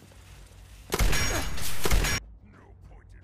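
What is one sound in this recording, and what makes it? Gunfire rattles in a loud, short burst.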